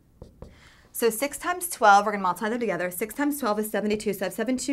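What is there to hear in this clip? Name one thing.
A young woman speaks clearly and with animation, close by.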